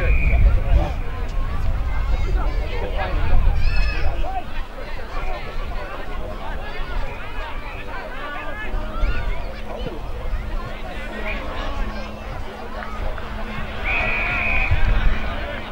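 A referee's whistle gives sharp, shrill blasts.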